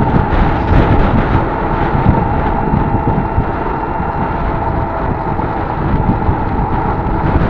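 A car drives along, its tyres rumbling on asphalt.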